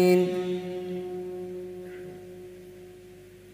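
A young man chants through a microphone, ending on a long held note that echoes and fades in a large hall.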